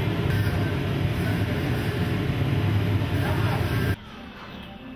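A furnace roars with a steady low rumble.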